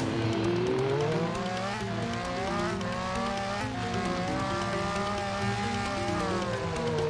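A motorbike engine revs up and down as it speeds along.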